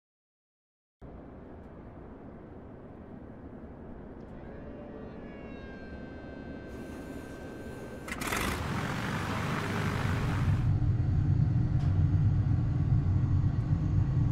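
A small propeller plane's engine starts up and grows into a loud, steady drone.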